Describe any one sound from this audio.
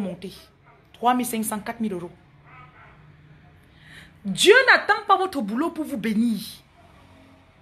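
A woman speaks with animation close to a phone microphone.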